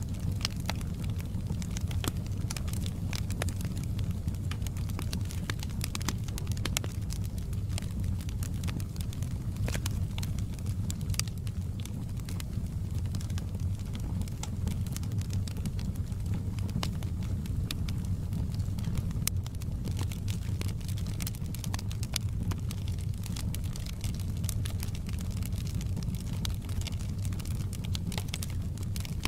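Burning logs crackle and pop.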